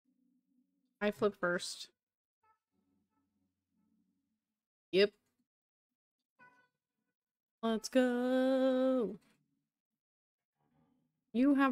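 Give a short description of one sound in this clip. A young woman speaks casually into a microphone, in short bursts.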